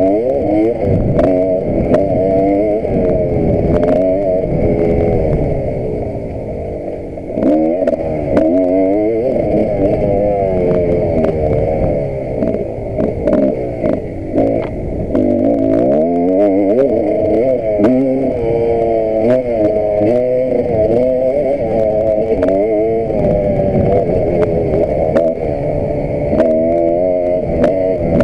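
Wind buffets loudly against the microphone.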